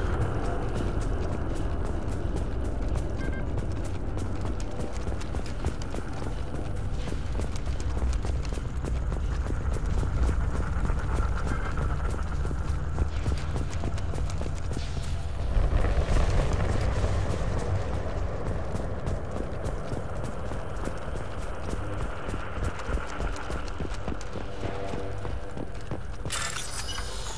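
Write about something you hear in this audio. Heavy footsteps thud steadily on hard ground.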